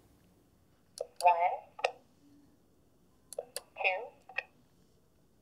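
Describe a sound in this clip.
A big-button talking switch plays a short recorded voice message when pressed.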